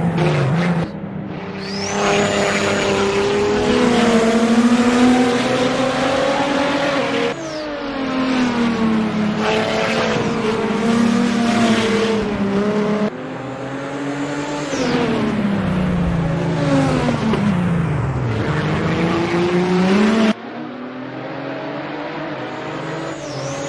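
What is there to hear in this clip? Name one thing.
A racing car engine roars, rising and falling in pitch as it shifts gears.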